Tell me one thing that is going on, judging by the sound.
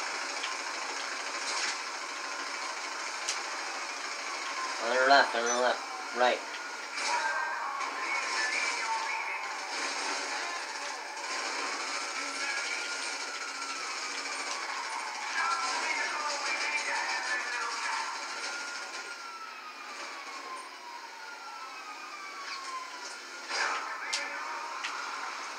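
A game's van engine hums steadily from a television speaker.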